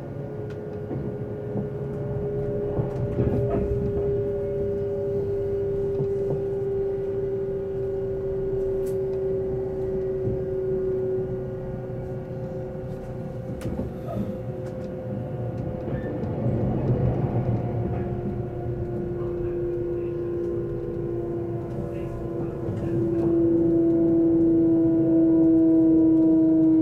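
A train's motor hums with a steady whine that slowly shifts in pitch.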